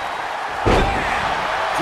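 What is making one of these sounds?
A heavy body blow thuds once.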